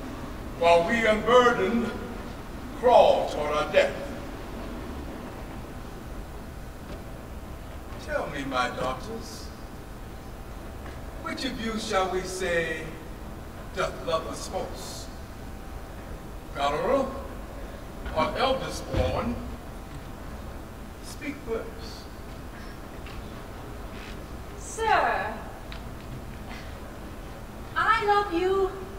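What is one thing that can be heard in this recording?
A man speaks dramatically into a microphone, with pauses.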